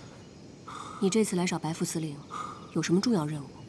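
A young woman speaks anxiously, close by.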